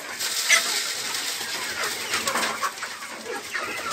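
A chicken flaps its wings noisily.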